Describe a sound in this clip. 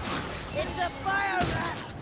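A blade strikes flesh with wet thuds.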